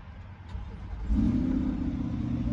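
A car engine starts up.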